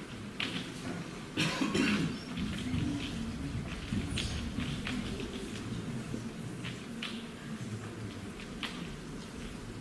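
Feet tap and shuffle on a wooden stage.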